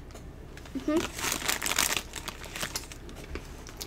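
A snack bag crinkles.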